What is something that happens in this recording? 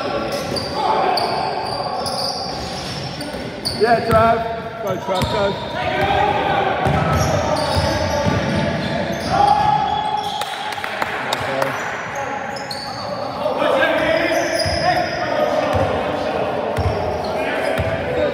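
A basketball bounces on a hard floor.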